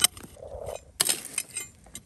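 A metal tool scrapes and digs into loose gravel.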